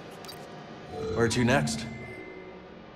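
A holographic map powers up with a rising electronic whoosh.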